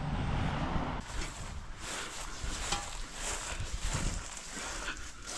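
Footsteps swish through thick grass.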